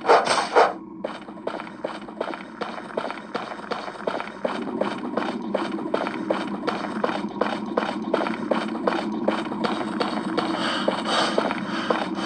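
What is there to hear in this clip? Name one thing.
Footsteps crunch at a steady walking pace.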